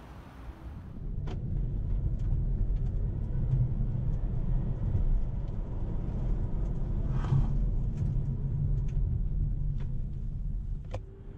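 A car drives along a road with a low, steady rumble.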